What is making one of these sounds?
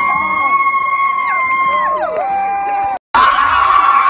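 Young women scream excitedly close by.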